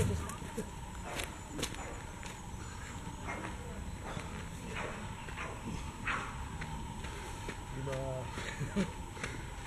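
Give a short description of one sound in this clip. A runner's footsteps crunch on a gravel path.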